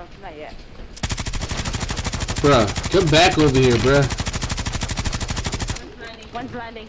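A rifle fires in a rapid, steady burst.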